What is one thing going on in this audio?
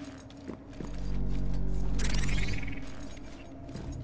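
Metal screeches and grinds as sparks fly.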